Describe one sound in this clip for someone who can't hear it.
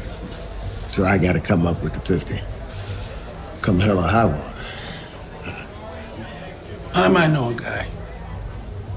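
A second man answers in a low, measured voice.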